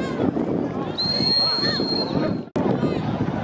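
A referee's whistle blows a long shrill blast.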